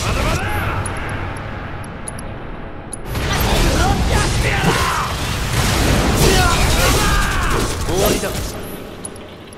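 Metal blades clang and scrape against metal.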